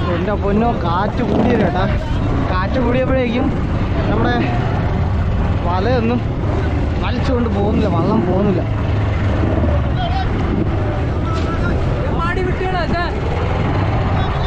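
Men call out to each other from boats nearby.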